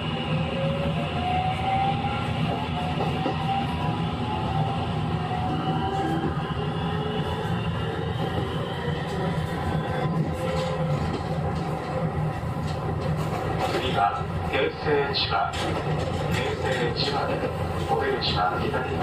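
An electric train's motor hums with a rising whine.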